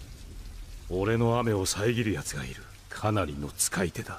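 A man speaks slowly in a cold, low voice.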